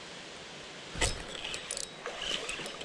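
A baitcasting reel clicks as it is handled.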